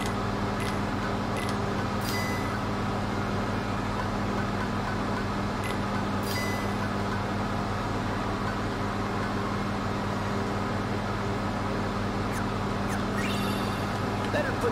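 Short electronic menu blips chime now and then.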